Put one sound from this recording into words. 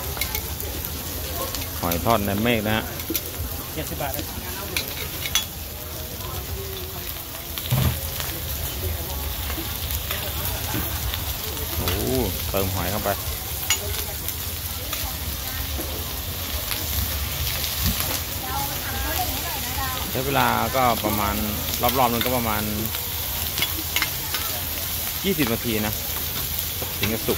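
Food sizzles steadily as it fries on a hot griddle.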